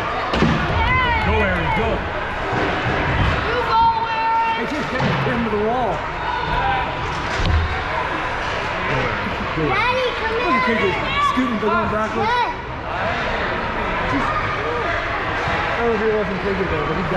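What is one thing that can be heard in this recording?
Ice skates scrape and swish on ice.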